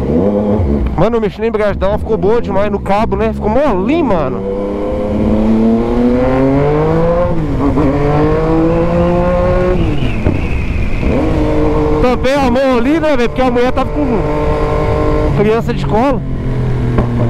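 A motorcycle engine pops and crackles in short bursts.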